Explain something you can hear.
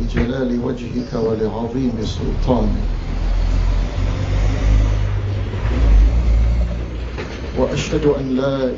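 A man speaks slowly into a microphone, heard through a loudspeaker.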